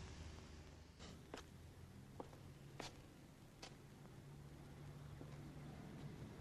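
Footsteps tap slowly on a stone street.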